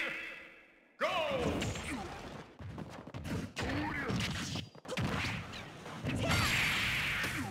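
Cartoonish fighting game sound effects burst with hits, whooshes and blasts.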